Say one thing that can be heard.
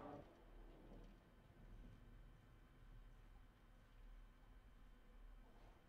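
Distant explosions rumble low.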